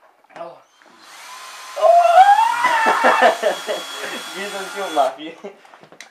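A cordless drill whirs loudly, its pitch rising as it speeds up.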